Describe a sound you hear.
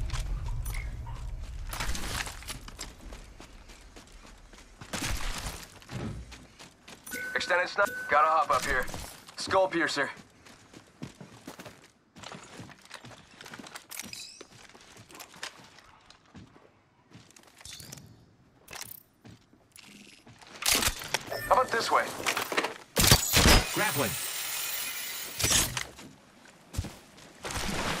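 Footsteps run over dirt and sand.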